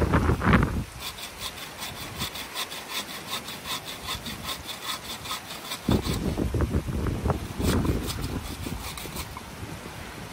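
A bow saw cuts back and forth through a dry branch in quick, even strokes.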